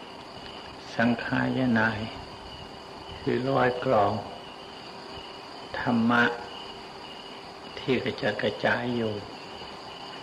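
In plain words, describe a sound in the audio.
An elderly man speaks slowly and calmly in short phrases with pauses.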